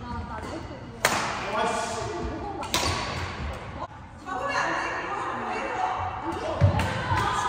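Shuttlecocks are struck sharply with rackets in a large echoing hall.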